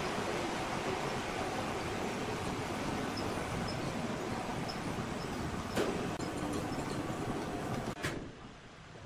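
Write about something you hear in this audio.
A large band saw machine runs with a loud, steady whirr and rumble.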